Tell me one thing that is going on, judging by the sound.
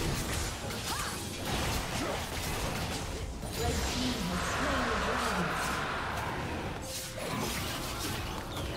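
Fantasy spell effects crackle and boom in a busy game battle.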